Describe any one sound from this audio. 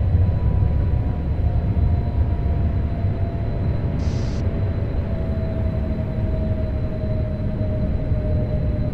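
An electric train motor whines, slowly falling in pitch as the train slows down.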